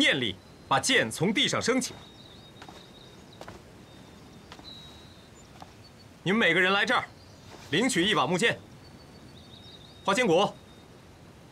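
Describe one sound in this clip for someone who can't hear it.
A young man speaks firmly and clearly, in short phrases.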